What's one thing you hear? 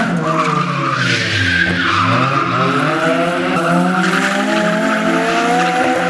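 A car engine hums as the car drives away.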